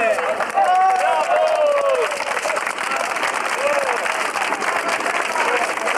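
A crowd of men sings together outdoors.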